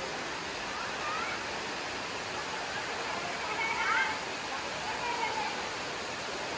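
Children chatter softly nearby.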